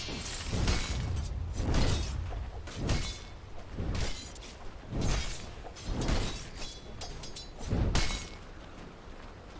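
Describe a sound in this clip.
Magical blasts and weapon strikes crash in quick bursts during a fight.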